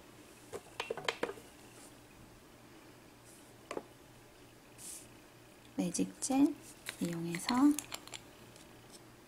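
Fingers tap and handle a small plastic jar with light clicks.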